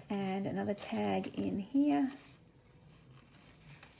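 Paper crinkles softly as a card slides into a pocket.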